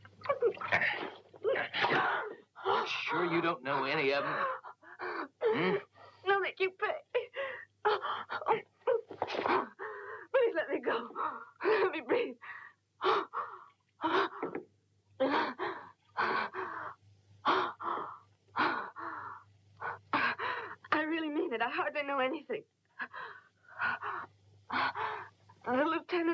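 A woman speaks breathlessly close by.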